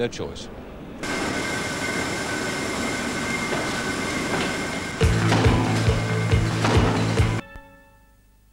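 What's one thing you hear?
Machinery roars loudly and steadily.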